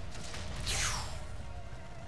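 A sword whooshes through the air.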